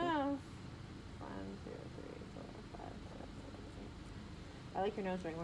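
A young woman whimpers and cries out close by.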